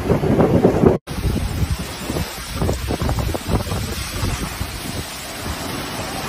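Heavy rain pours down.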